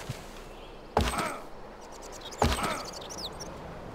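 Arrows whoosh and strike with sharp impacts.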